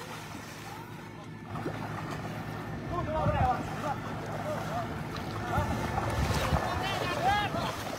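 Water splashes as an elephant wades through shallow water.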